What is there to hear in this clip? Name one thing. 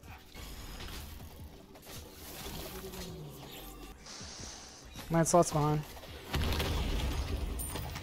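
Game spell effects whoosh and crackle.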